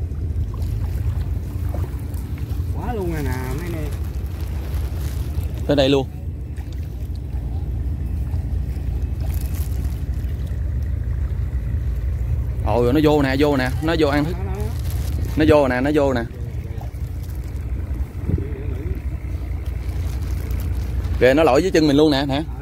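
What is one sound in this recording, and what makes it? Water laps and ripples on a wide river.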